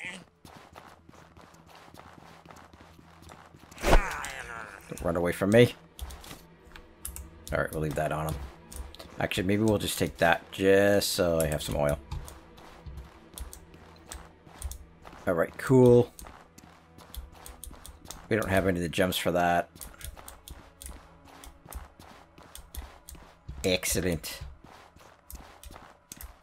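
Footsteps crunch on a stone floor.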